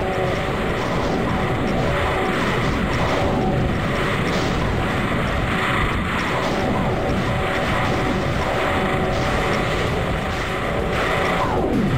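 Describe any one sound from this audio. Fireballs whoosh and explode repeatedly.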